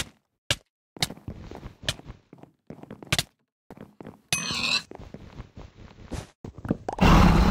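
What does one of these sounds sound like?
Blocks break with short crunching pops.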